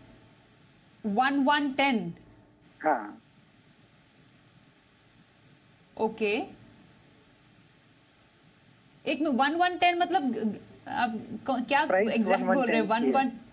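A woman speaks clearly into a microphone in short bursts.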